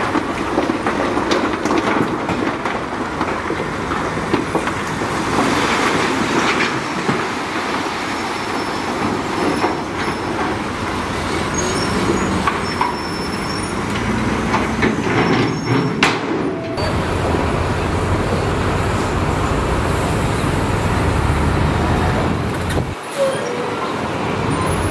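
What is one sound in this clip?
A diesel truck engine runs loudly.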